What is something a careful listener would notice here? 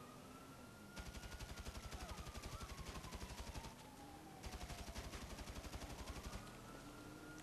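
An automatic rifle fires in long rapid bursts.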